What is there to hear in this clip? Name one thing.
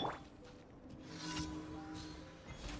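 A magical blast bursts with a bright whoosh.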